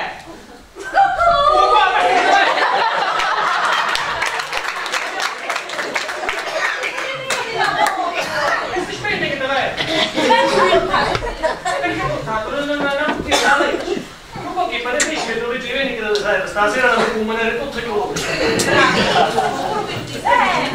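A man speaks in reply on a stage, heard from the audience.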